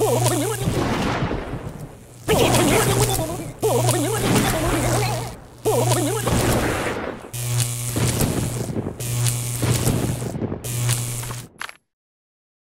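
Electric zaps crackle and buzz in bursts.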